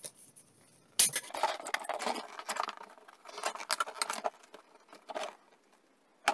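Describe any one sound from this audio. A paper disc scrapes against the inside of a plastic bucket.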